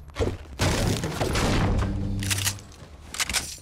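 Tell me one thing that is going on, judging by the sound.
A pickaxe strikes wooden furniture with heavy thuds.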